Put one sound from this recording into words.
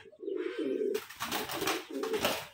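A pigeon flaps its wings.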